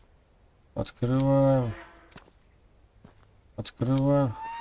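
A wooden barn door creaks on its hinges as it swings open.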